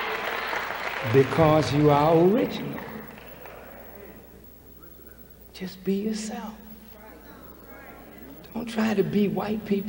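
A man speaks with animation into a microphone, through loudspeakers in a large hall.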